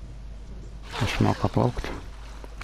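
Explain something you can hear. A girl gasps for breath after surfacing.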